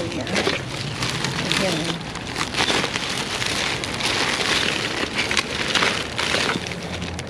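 Gloved hands rustle and crinkle through thin plastic bags.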